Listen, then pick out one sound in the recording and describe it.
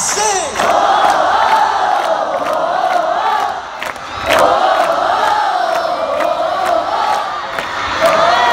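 A large crowd sings along loudly outdoors.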